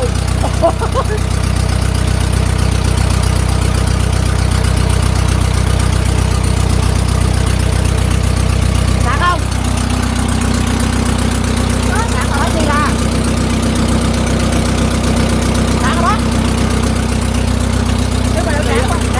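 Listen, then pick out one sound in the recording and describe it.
An engine hums steadily nearby.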